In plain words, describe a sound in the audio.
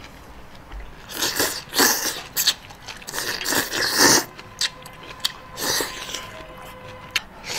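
A man slurps noodles loudly up close.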